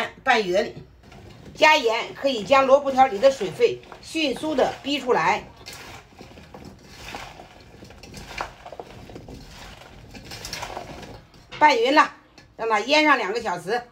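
Hands toss and squeeze cut vegetables in a bowl.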